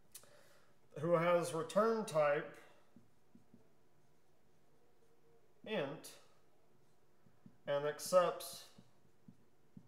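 A man speaks calmly nearby, in short phrases with pauses.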